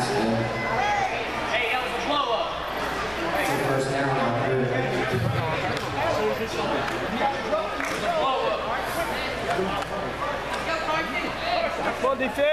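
Young players shout to each other across the field.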